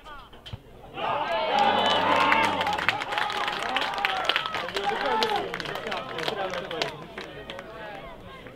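Spectators cheer and shout excitedly outdoors.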